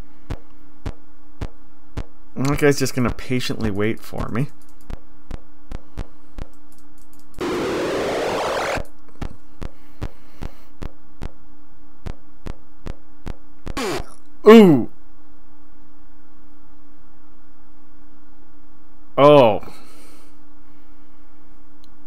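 A video game ticks steadily with short electronic beeps.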